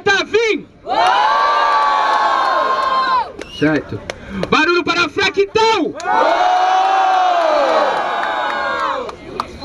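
A crowd of young people cheers and shouts in drawn-out cries.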